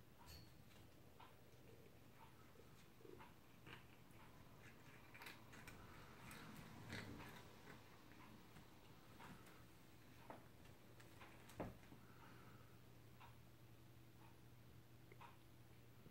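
A cat eats with soft, wet chewing and licking sounds close by.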